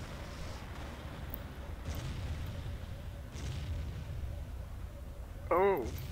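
Distant explosions thud and crackle.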